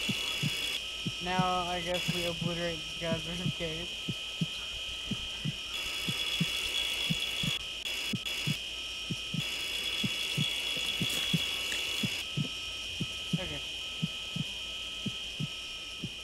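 A heart monitor beeps at a steady pace.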